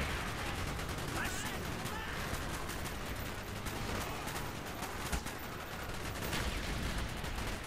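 Rifle shots crack in rapid bursts close by.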